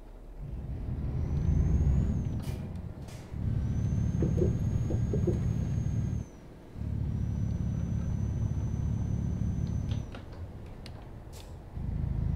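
A truck engine rumbles deeply, rising and falling in bursts.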